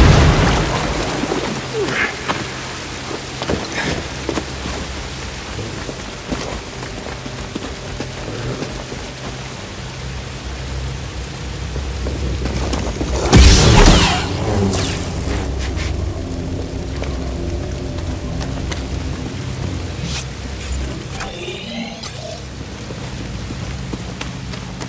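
Footsteps run over stone.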